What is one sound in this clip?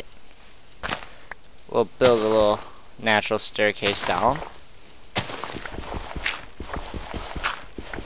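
Dirt crunches in short bursts as it is dug away.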